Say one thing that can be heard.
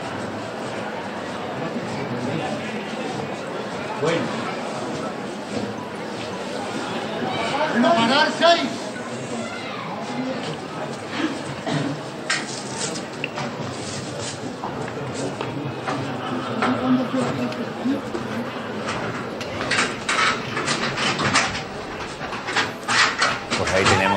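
A large crowd murmurs and chatters nearby.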